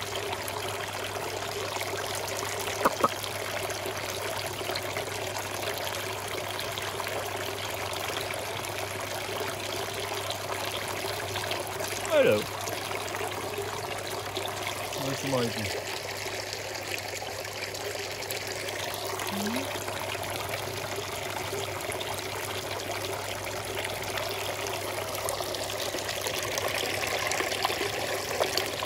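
Water trickles and splashes steadily into a pool.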